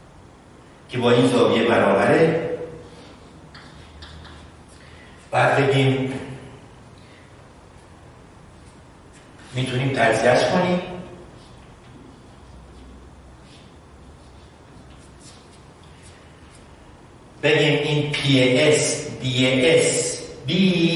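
A man speaks calmly, with long pauses.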